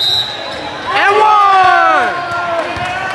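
A young man shouts loudly and excitedly.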